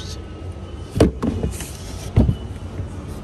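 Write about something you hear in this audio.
A car trunk's floor panel knocks loudly as it is handled.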